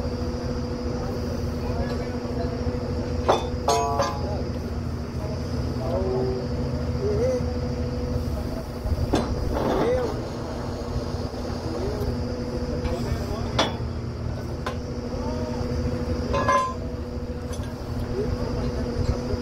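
A drilling rig engine runs with a steady low drone.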